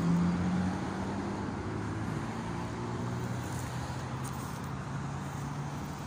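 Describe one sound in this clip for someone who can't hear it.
A dog pants softly close by.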